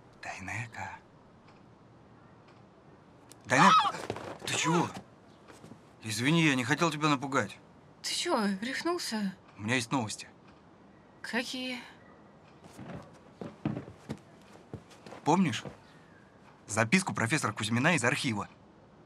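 A young man speaks tensely at close range.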